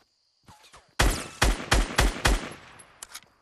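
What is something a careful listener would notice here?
An assault rifle fires a rapid burst of shots.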